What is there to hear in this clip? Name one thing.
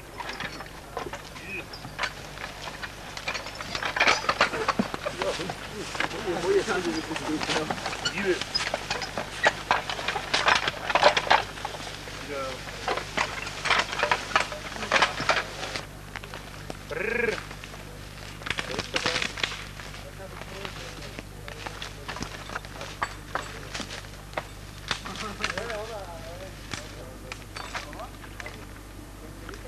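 Men talk outdoors nearby.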